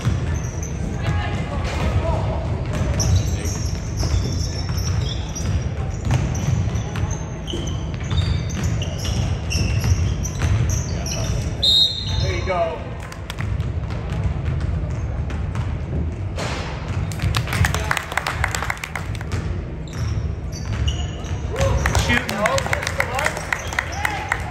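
Spectators chatter and call out in a large echoing gym.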